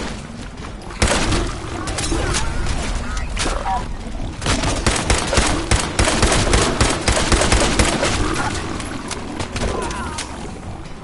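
A creature snarls and growls.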